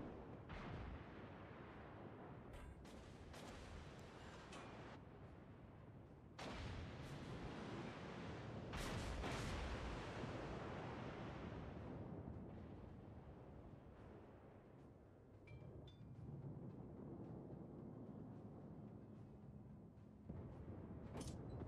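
Heavy guns boom in loud, sudden blasts.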